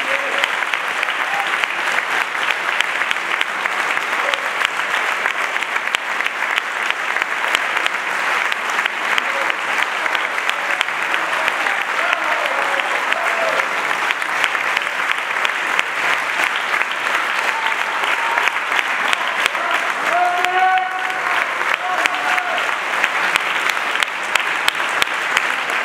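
An audience applauds loudly in a large room.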